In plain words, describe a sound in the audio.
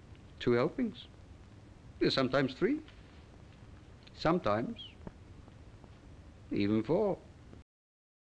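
An older man speaks slowly and calmly in short phrases, close by.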